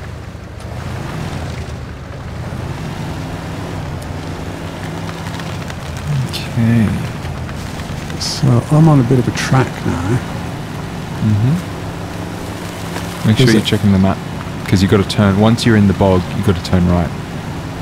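A truck engine rumbles steadily as it climbs over rough ground.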